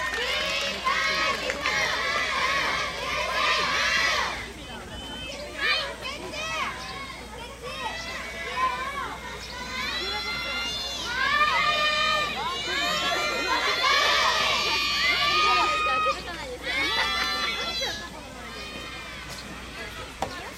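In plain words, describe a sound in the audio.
Young women cheer and call out loudly nearby.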